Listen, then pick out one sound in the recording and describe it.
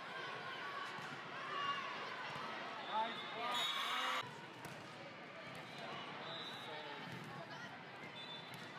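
Young women players shout and call out to each other.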